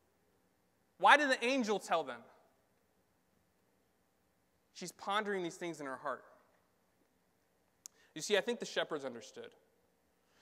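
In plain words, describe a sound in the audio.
A young man speaks calmly into a microphone in short phrases with pauses.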